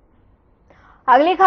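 A young woman reads out the news into a microphone.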